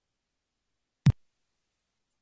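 A door thuds once, dull and low.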